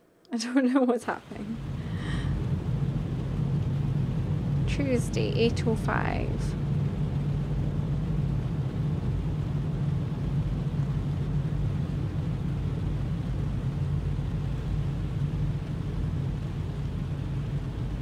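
Heavy rain drums on a car windshield.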